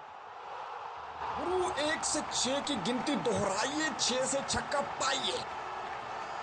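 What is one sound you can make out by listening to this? A crowd cheers and whistles loudly in a stadium.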